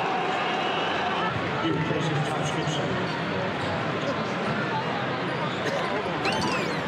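A large arena crowd murmurs and chatters, echoing in a big hall.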